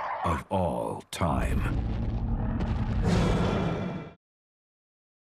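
A large beast roars loudly and growls deeply.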